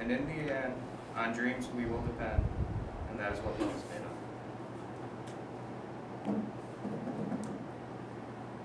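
A young man speaks nearby, reading out.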